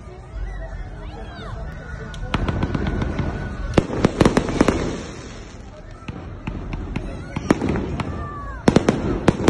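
Rockets whistle as they shoot up into the sky.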